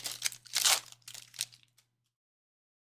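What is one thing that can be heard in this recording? Trading cards rustle and slide in hands.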